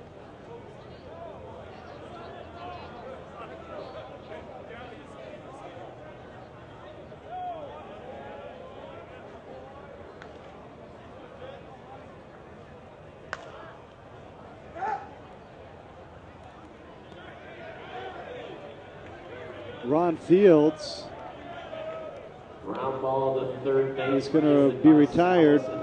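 A stadium crowd murmurs in the stands.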